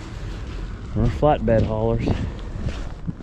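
A man speaks with animation close to the microphone.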